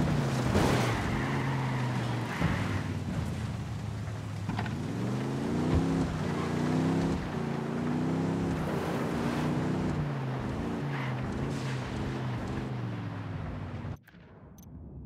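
A pickup truck engine hums and revs as it drives.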